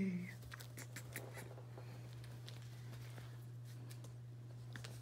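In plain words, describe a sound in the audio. A puppy's paws patter and tap on the floor.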